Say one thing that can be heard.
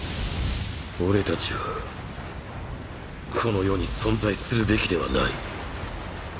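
A man speaks in a low, grim voice.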